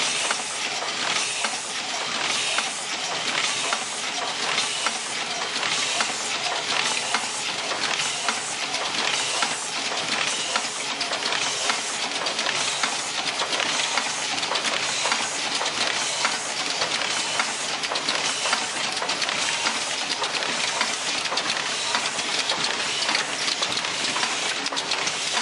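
Machine parts click and clack in quick, steady beats.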